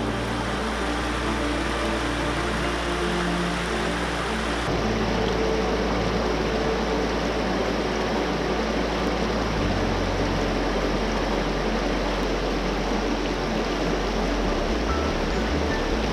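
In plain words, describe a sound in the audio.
A shallow stream rushes and splashes steadily over rocks.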